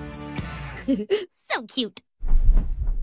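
A young girl shouts excitedly.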